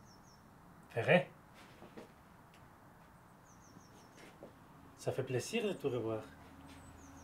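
A man speaks softly nearby.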